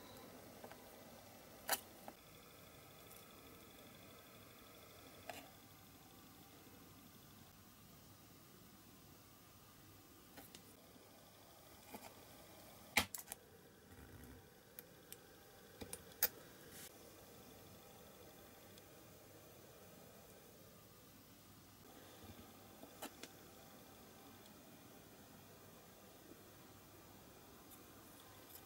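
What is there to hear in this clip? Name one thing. Small metal parts click and tap together in fingers.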